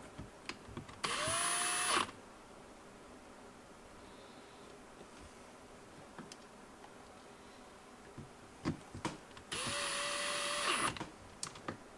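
A cordless drill motor whirs in short steady bursts.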